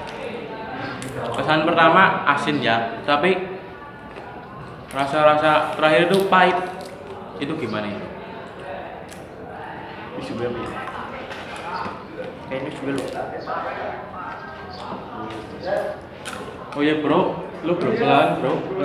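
Snack wrappers crinkle.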